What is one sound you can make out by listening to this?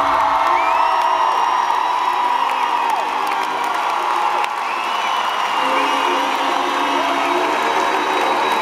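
Young men sing through microphones over loudspeakers in a large echoing hall.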